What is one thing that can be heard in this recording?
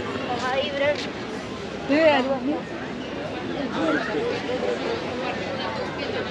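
Adults chatter and call out nearby outdoors.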